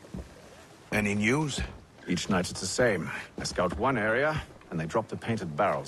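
A man speaks calmly and clearly, close up.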